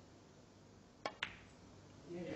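A snooker ball clicks sharply against another ball.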